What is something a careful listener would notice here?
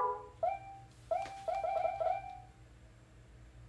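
A video game menu plays short bright chiming beeps.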